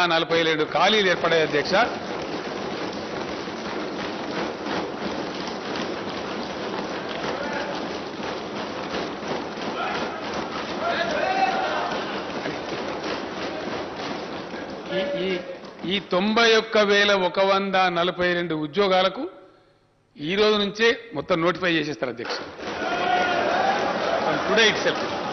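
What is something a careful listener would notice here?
An elderly man speaks firmly into a microphone in a large hall.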